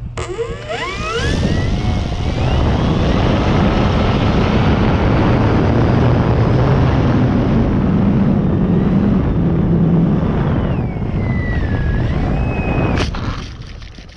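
A plane's electric motor whines loudly and rises in pitch.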